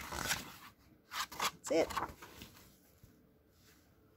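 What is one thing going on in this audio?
A book closes with a soft thump.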